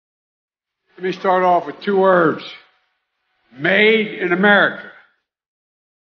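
An elderly man speaks through microphones in a large echoing hall.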